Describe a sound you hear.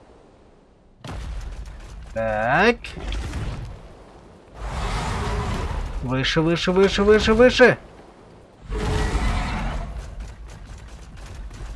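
Large wings beat with a whooshing rush.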